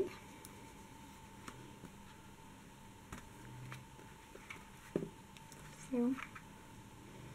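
Stiff card pages tap and rustle as they are turned by hand.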